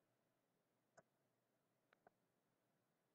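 A felt-tip marker taps and scratches softly on paper.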